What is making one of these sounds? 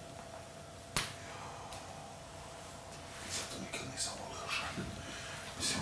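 Clothing rustles as a man handles a shirt.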